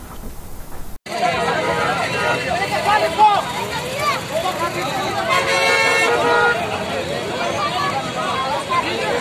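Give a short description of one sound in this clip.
A large crowd of men shouts and talks over one another outdoors.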